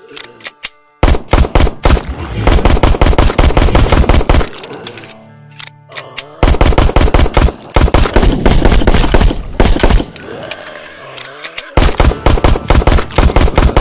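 Rapid gunshots ring out in bursts.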